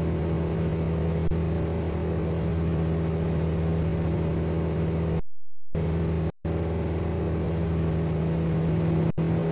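A propeller plane drones steadily overhead.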